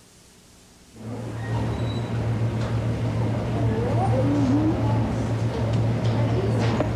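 Footsteps shuffle across a hard floor.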